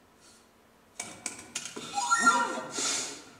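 Percussion is struck sharply, with bright ringing tones.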